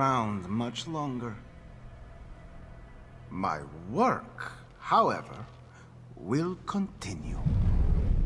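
A man speaks slowly and calmly in a low voice, close by.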